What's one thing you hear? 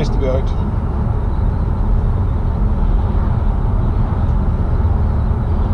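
A car engine hums and tyres rumble on the road from inside the car.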